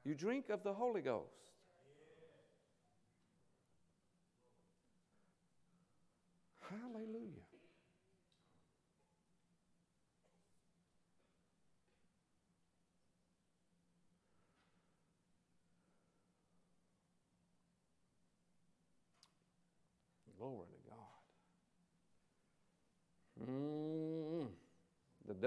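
A man speaks slowly and with emphasis into a microphone in a large hall, with long pauses.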